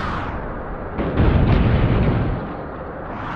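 A car crashes heavily to the ground.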